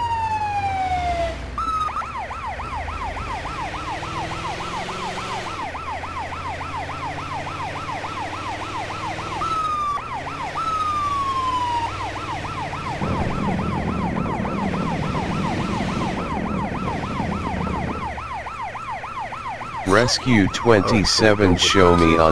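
A siren wails with a fast, steady yelp, changing to a slower wail at times.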